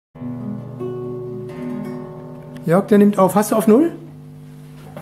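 An acoustic guitar is plucked and strummed, its notes ringing out.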